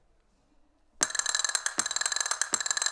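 Castanets clatter rapidly and loudly.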